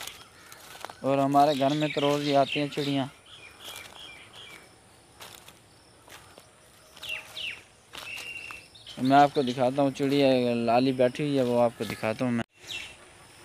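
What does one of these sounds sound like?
A young man speaks close by in a drawn-out, sing-song voice.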